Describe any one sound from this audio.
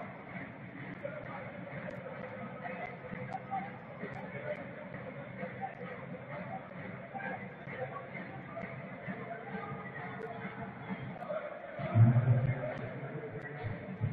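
A large crowd murmurs and chants steadily in a big open stadium.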